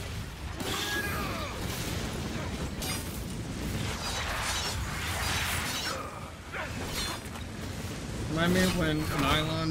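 Electric magic crackles and bursts loudly.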